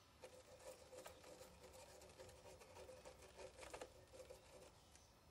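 A small brush scrubs lightly against a hard surface.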